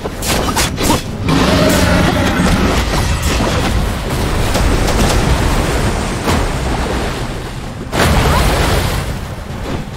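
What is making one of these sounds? Water crashes and splashes in a loud rush.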